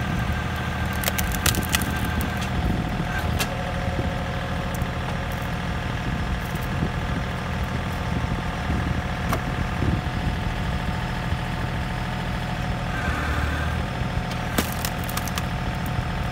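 Wood cracks and splits apart.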